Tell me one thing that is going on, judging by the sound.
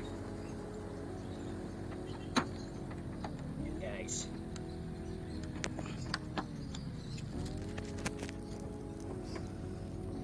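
Plastic parts click and knock as a car door handle is worked loose.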